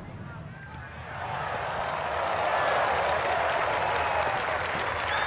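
A crowd cheers and applauds, growing louder.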